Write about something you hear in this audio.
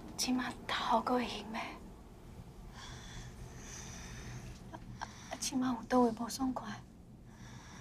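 A middle-aged woman speaks softly and worriedly up close.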